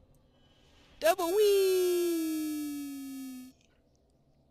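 A bright magical chime rings out and slowly fades.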